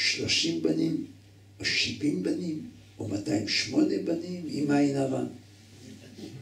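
An elderly man speaks with animation into a nearby microphone.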